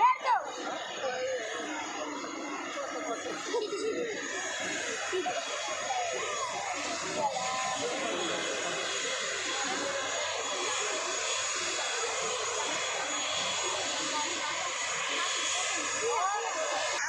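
A crowd of children chatters and calls out nearby, outdoors.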